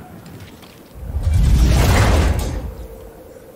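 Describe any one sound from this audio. A metal chest creaks and clanks open.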